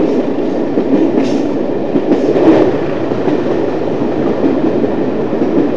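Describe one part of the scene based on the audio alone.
Branches brush and swish against the side of the train.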